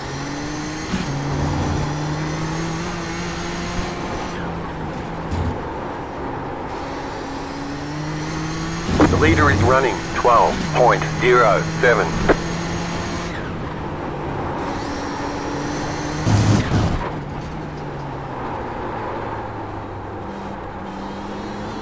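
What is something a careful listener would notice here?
A racing car engine drones and shifts pitch as it speeds up and slows down.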